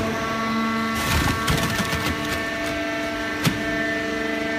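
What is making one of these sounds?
Metal parts of a baling press clank.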